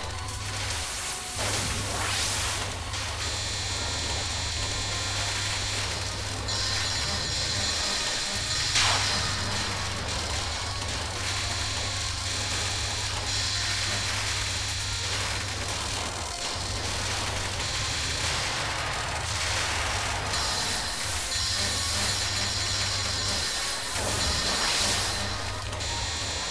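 Electronic game music plays steadily throughout.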